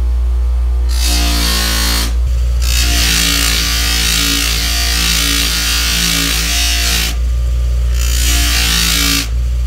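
Metal grinds loudly against a spinning grinding wheel.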